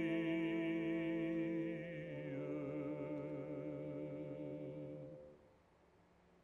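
A man sings in a full, resonant baritone, holding long notes.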